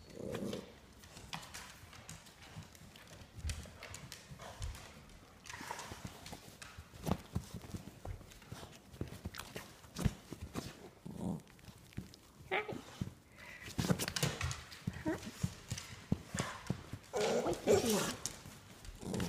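Paws scuffle on a soft cushion.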